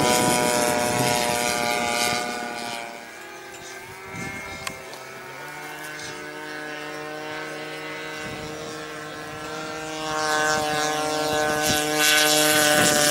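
A model airplane engine whines overhead, fading and then growing louder as it flies close.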